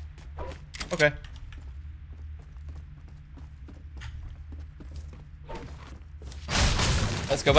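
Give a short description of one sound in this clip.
Footsteps thud steadily up wooden stairs.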